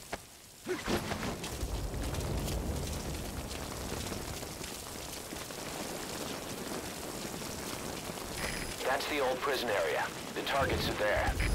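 Footsteps run on a dirt path.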